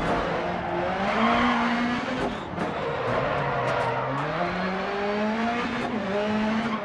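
Tyres skid and hiss over tarmac and gravel.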